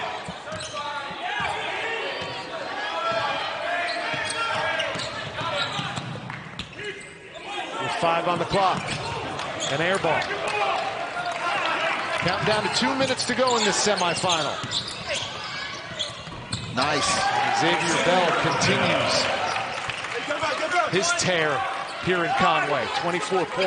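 A crowd murmurs and cheers.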